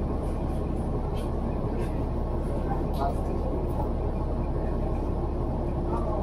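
A vehicle's engine hums steadily from inside the car.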